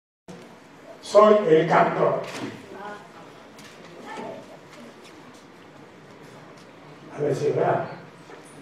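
An elderly man speaks loudly to an audience in an echoing hall.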